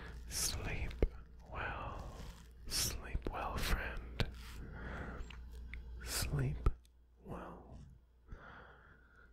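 Soft mouth clicks and smacks sound close to a microphone.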